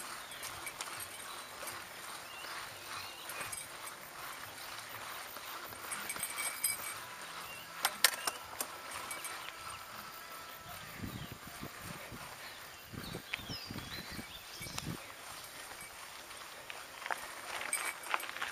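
Bicycle tyres crunch and rattle over a dry dirt trail.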